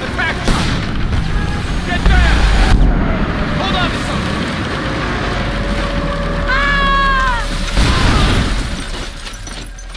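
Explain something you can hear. Explosions rumble in the distance.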